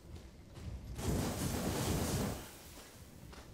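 A gas burner roars in a short, hissing burst of flame.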